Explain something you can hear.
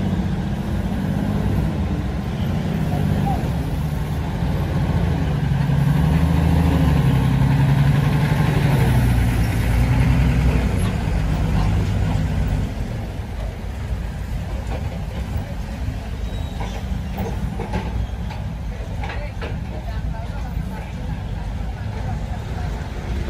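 Heavy truck engines idle with a deep, steady rumble close by.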